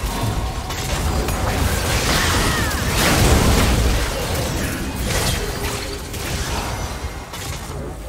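Magic spells blast and crackle in a hectic fantasy battle.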